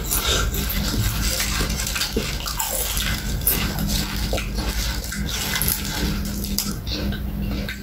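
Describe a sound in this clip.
Crisp food rustles and crackles as a hand picks through it.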